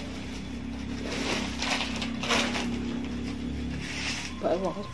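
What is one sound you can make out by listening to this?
Dry corn husks rustle and crackle as they are peeled.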